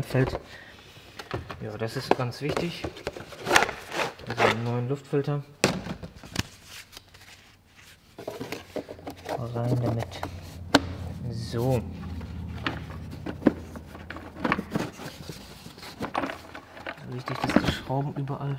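Plastic parts knock and click as they are handled.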